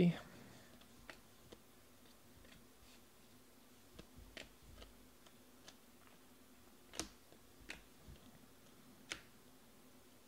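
Trading cards flick and slide against each other as they are flipped through by hand.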